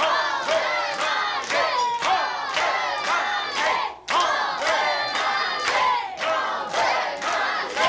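A group of people sings together loudly.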